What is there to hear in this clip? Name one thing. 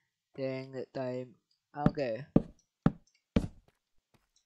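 A block is set down with a dull thud.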